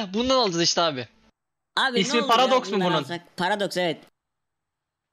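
A young man talks animatedly into a microphone, close up.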